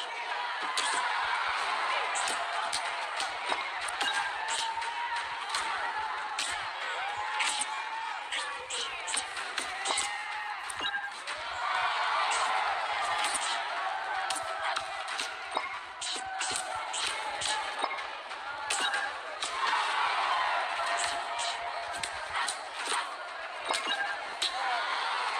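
Punches and kicks land with sharp thuds.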